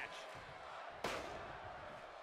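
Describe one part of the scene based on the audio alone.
A body slams down onto a wrestling mat with a heavy thud.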